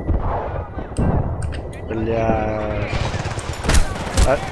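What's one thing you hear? Gunshots bang sharply.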